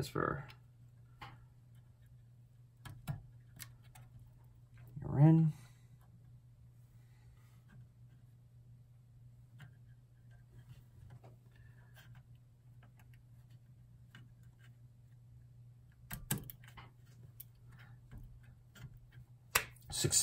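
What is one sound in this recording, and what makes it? Fingers click and tap on a circuit board.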